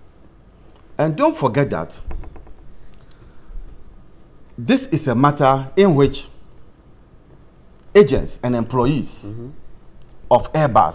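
A man speaks with animation into a microphone in short bursts.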